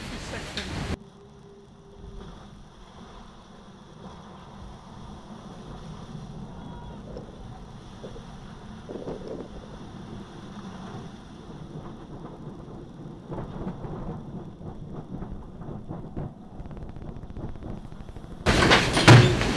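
Waves crash against a sailing boat's hull and spray over the deck.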